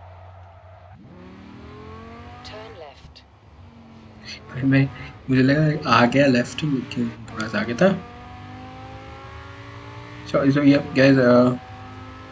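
A car engine roars and revs up through the gears.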